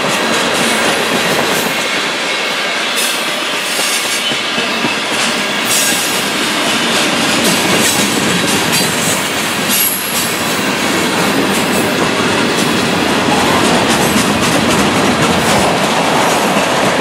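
A freight train rolls past close by.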